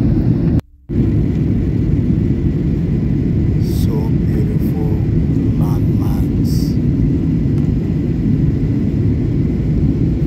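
A plane's engines roar steadily, heard from inside the cabin.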